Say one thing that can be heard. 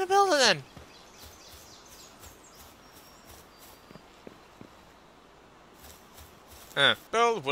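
Footsteps patter softly on grass and stone.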